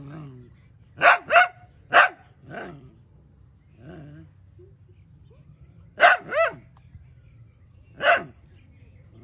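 A small dog barks sharply in short bursts.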